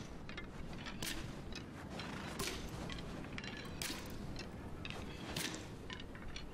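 Arrows whoosh from a bow again and again.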